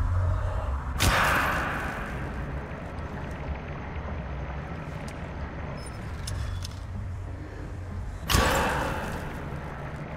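A loud magical blast bursts and rings out.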